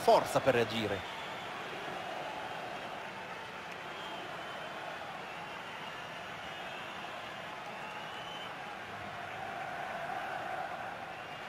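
A crowd cheers and roars in a stadium.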